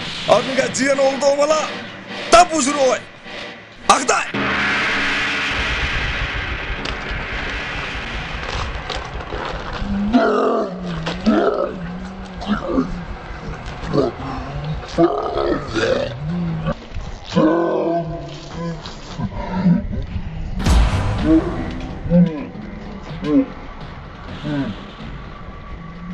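A man speaks forcefully up close.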